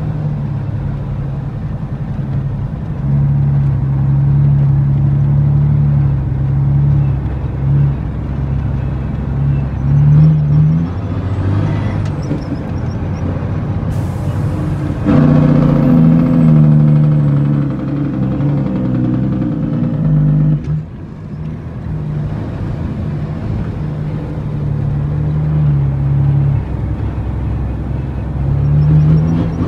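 Tyres crunch and rumble over a rough dirt track.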